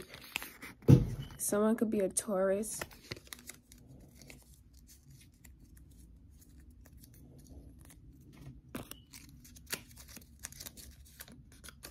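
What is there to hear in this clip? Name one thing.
Cards rustle and tap as hands handle them.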